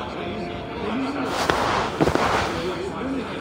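A man groans as he wakes.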